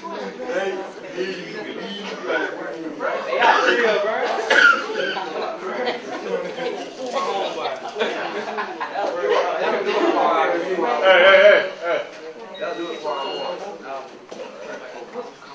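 A man speaks with animation to a room of people.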